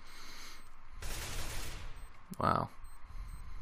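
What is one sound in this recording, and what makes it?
A rifle fires a short burst of gunshots.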